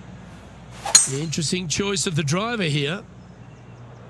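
A golf ball whistles through the air in flight.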